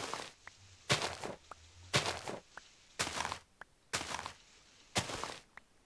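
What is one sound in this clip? Straw bales crunch as they are broken, in quick bursts about once a second.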